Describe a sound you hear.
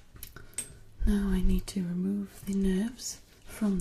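A young woman speaks quietly and close up.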